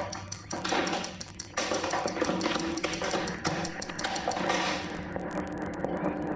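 Electronic music plays through loudspeakers, with dense shifting tones and sharp clicks.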